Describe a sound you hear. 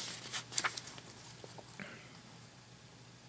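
Paper pages of a booklet rustle and crinkle as they are handled.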